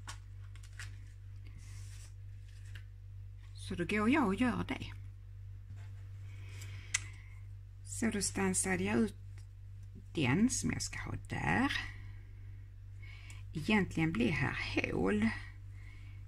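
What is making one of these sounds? Stiff paper cards rustle and scrape softly as they are handled.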